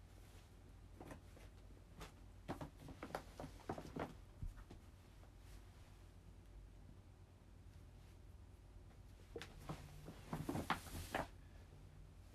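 Clothing rustles and brushes against the microphone as a woman moves close by.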